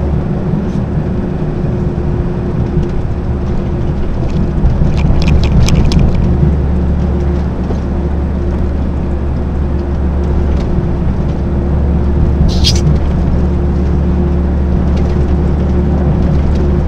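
Tyres roar on the road surface beneath a heavy truck.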